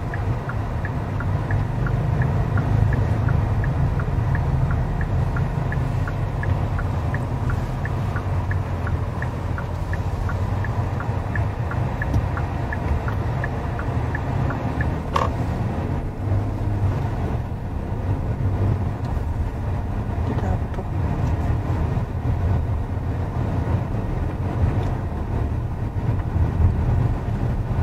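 A car engine hums and tyres rumble steadily on the road from inside the car.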